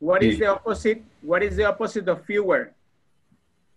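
A young man speaks calmly and clearly into a microphone, heard close up as on an online call.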